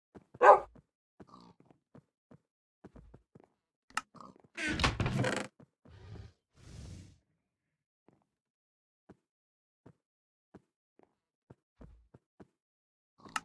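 Soft clicks pop as items are picked up and placed.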